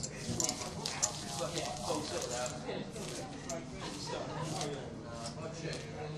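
Playing cards slide and shuffle across felt.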